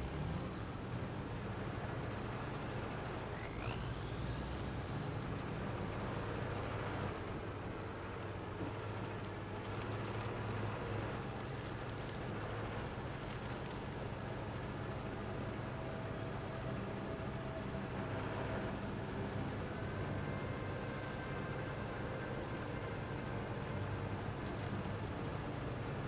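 Tyres crunch over snow.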